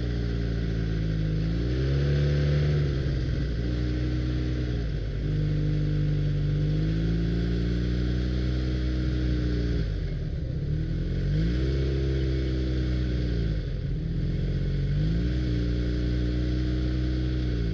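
A snowmobile engine drones up close, its pitch rising and falling as it speeds up and slows.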